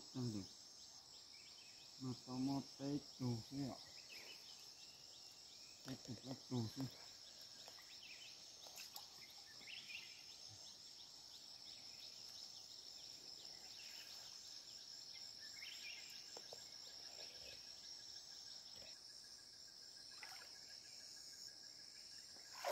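Water sloshes as a man wades.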